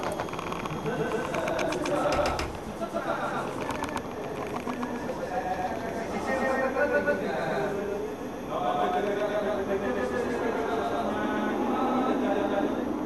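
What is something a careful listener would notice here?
Several men talk loudly with animation nearby.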